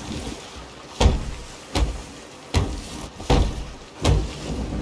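Wooden planks are hammered in a steady series of knocks.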